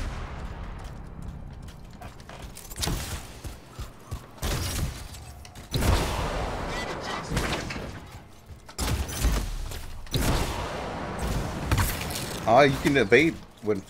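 Heavy metal footsteps thud on the ground.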